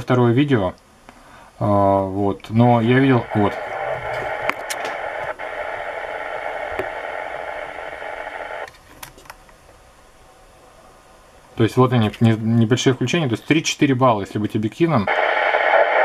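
A man's voice crackles through a radio loudspeaker.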